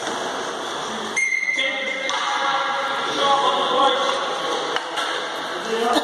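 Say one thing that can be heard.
Hockey sticks clack against a ball and the floor in a large echoing hall.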